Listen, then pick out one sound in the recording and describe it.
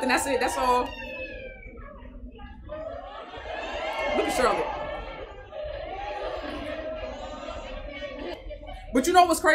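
Young women talk and giggle, heard as if played back from a recording.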